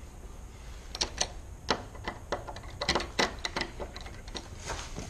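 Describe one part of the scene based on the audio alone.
A door latch and knob rattle and clack.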